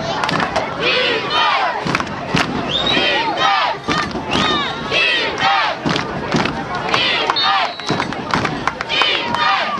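A crowd of spectators shouts and cheers loudly close by.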